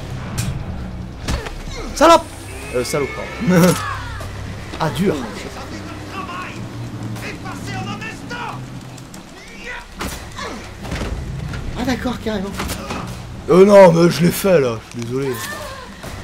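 A man grunts and strains while struggling.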